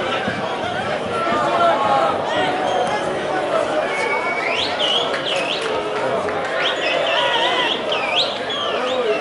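A crowd murmurs and chants steadily in an open stadium.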